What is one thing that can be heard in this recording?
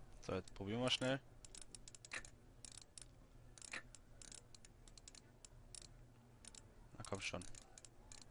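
A combination lock dial clicks as it turns.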